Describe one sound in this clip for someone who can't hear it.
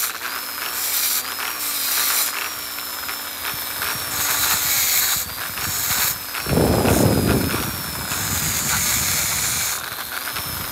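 A rotary tool grinds against a metal ring with a rasping hiss in short bursts.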